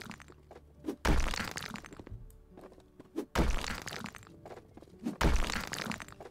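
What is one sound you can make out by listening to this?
A sledgehammer smashes into a brick wall with heavy, crashing blows.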